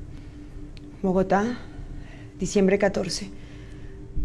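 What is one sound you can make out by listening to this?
A young woman speaks close by, in a breathy, uneasy voice.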